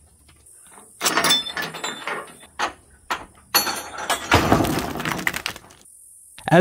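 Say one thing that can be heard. A wooden board knocks and clatters against a metal frame.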